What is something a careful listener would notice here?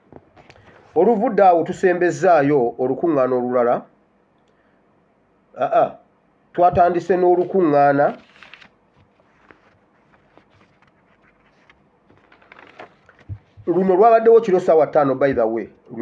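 A man speaks calmly close to the microphone, in bursts with pauses.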